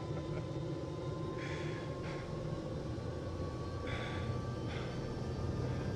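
A man pants and groans heavily up close.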